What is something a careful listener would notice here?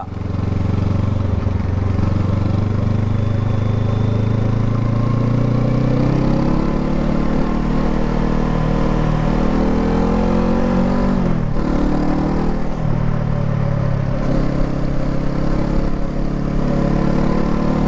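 A motorcycle engine rumbles steadily up close, rising and falling in pitch as it accelerates and shifts gears.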